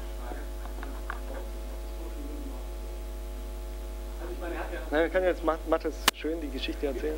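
A young man speaks calmly to a small group.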